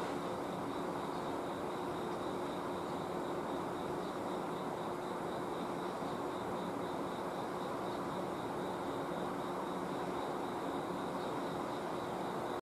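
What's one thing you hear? An electric train rumbles slowly over the tracks, humming steadily.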